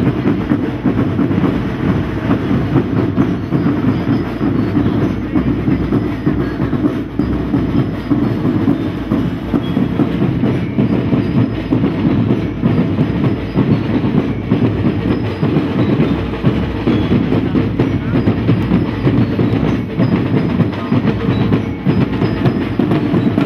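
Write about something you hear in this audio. Drums beat steadily outdoors in a marching rhythm.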